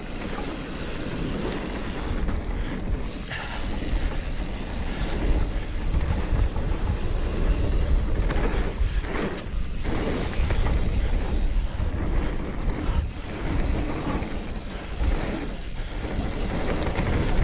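A bicycle's chain and frame rattle over bumps.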